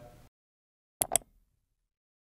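A mouse clicks twice.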